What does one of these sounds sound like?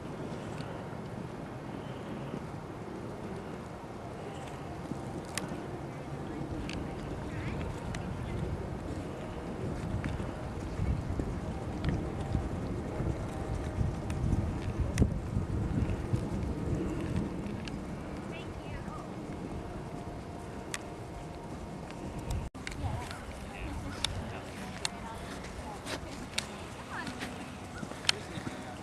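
A ridden horse's hooves thud on soft sand.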